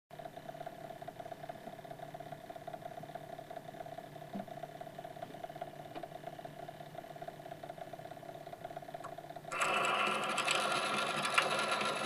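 A gramophone crank is wound by hand with a soft ratcheting sound.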